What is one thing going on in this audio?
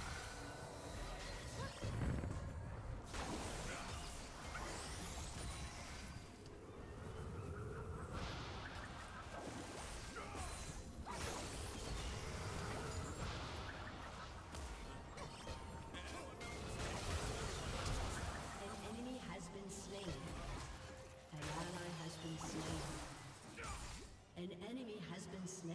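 Magic spells whoosh and crackle in a fast video game battle.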